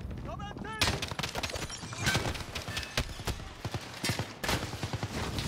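Gunshots fire in rapid bursts, close and loud.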